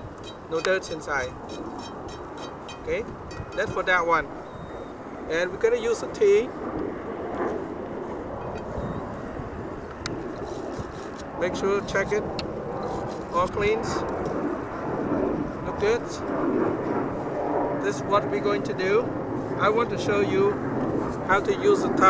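A man talks calmly and steadily, close by.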